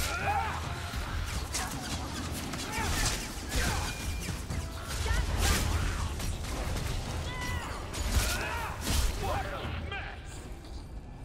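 Swords clash and spells burst in a loud fight.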